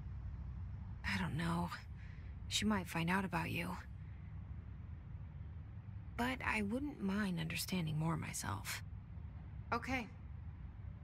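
A young woman speaks calmly and softly, close by.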